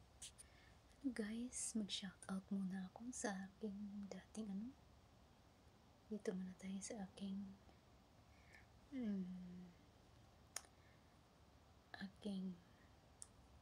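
A woman speaks calmly and close by, with short pauses.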